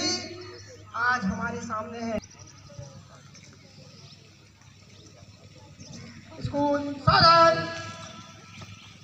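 A man speaks loudly over a loudspeaker outdoors, with pauses.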